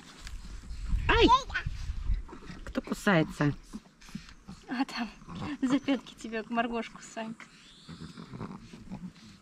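A young woman speaks gently and warmly close by.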